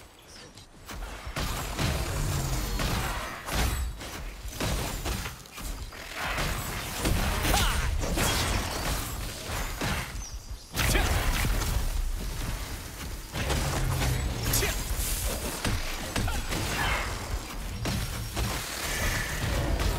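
Magic blasts and heavy impacts crash and boom in quick succession.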